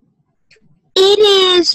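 A child calls out loudly over an online call.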